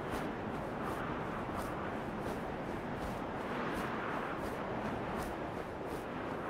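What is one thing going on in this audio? Wings flap in a steady, even rhythm.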